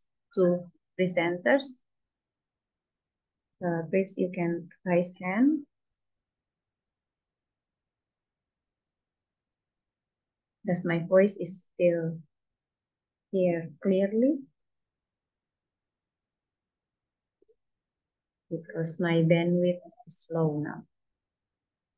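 A middle-aged woman speaks calmly in short phrases over an online call, with long pauses.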